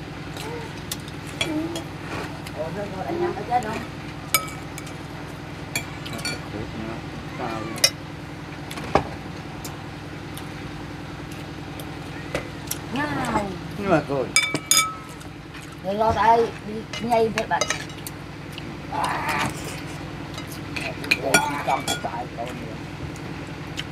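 Spoons clink against bowls.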